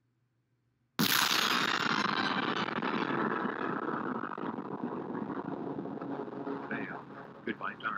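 A loud energy blast bursts suddenly and hisses, slowly fading.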